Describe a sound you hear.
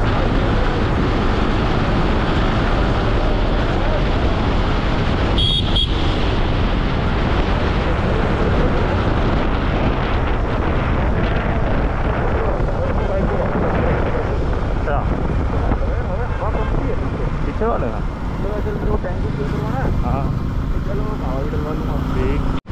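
Wind rushes loudly past a motorcycle rider moving at speed.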